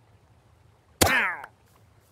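A sword swings with a sharp whoosh and hit.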